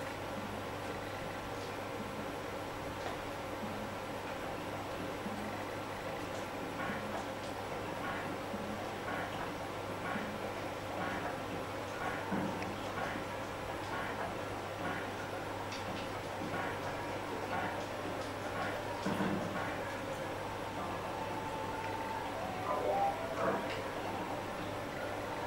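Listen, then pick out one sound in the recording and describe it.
Tinny retro game music plays steadily.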